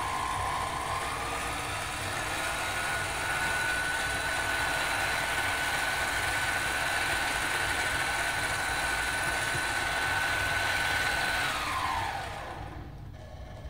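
An electric lathe motor hums with a steady whine, then winds down to a stop.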